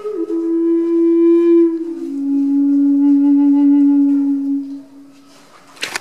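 A man plays a wooden flute with long, steady, held notes that echo off the surrounding rock.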